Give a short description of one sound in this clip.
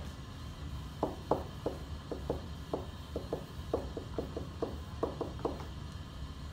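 A marker squeaks and taps on a board.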